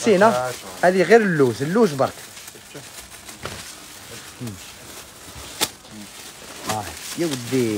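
A heavy blanket rustles as it is unfolded.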